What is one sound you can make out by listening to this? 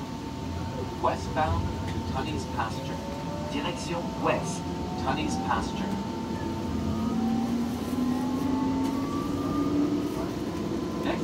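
A subway train pulls out of a station, its motor whining as it picks up speed.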